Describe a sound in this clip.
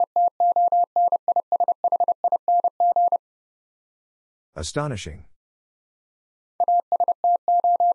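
A Morse code key sends quick, even beeping tones.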